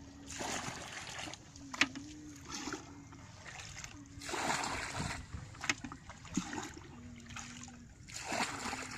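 Water splashes and pours as a bucket scoops it out.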